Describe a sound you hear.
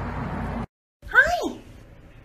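A small parrot squawks sharply.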